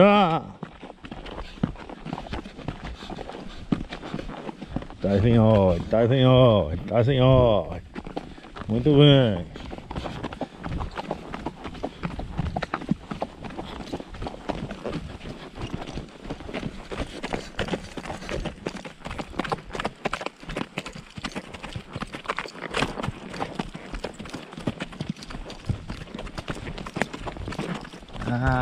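Horse hooves clop steadily on a dirt track.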